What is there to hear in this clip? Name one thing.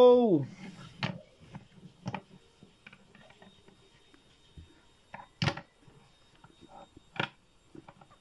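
Plastic toy figures click and knock against a hard surface.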